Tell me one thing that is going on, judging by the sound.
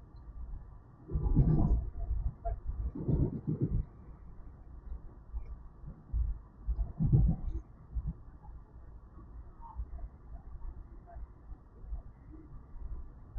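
A train rumbles along the tracks, heard from inside a carriage.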